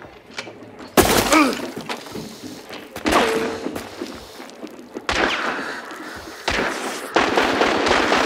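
Loud gunshots ring out several times, with a ringing echo after each.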